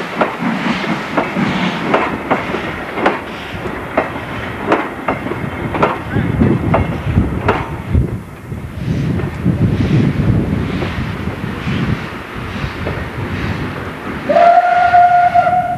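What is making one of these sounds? A steam locomotive chuffs in sharp, rapid puffs that slowly fade into the distance.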